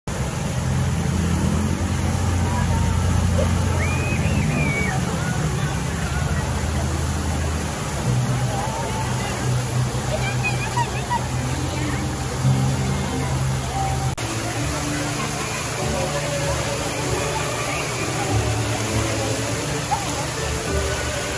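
A large crowd chatters outdoors.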